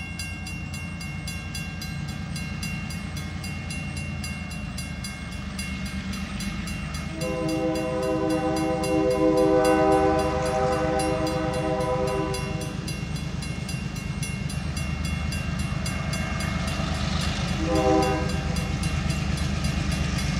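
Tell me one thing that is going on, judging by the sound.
A diesel locomotive engine rumbles as the train approaches.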